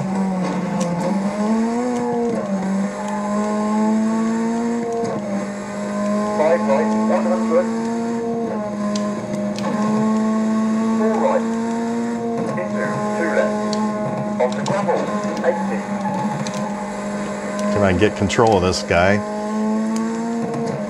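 A rally car engine hums steadily from a loudspeaker, its pitch rising and falling.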